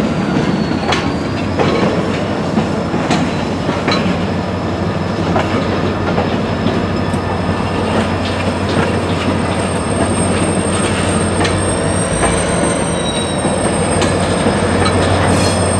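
Freight cars rumble and clank along the rails.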